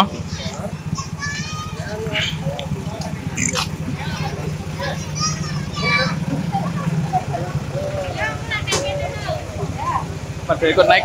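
Children and adults chatter and call out close by.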